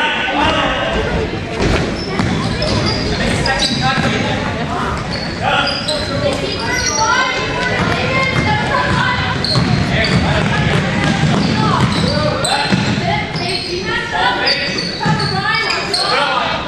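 Sneakers squeak sharply on a hard floor, echoing in a large hall.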